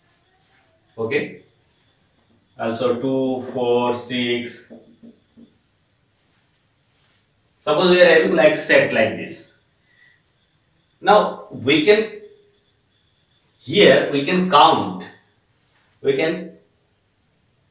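A man speaks calmly and clearly, as if teaching, close by.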